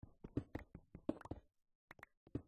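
A pickaxe chips at a stone block in a video game.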